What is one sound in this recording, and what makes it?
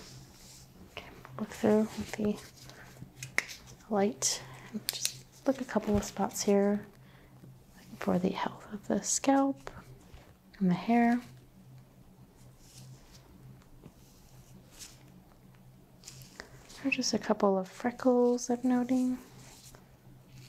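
A young woman speaks calmly close to a microphone.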